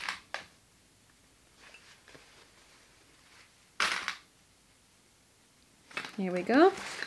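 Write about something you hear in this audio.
Fabric rustles as it is handled and folded.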